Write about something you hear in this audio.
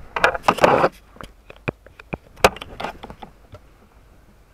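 Fingers rub and knock right against the microphone.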